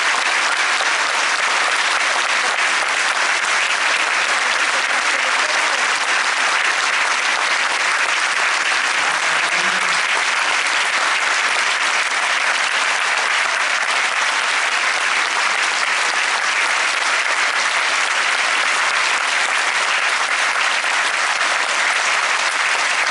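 A large audience applauds loudly and steadily in an echoing hall.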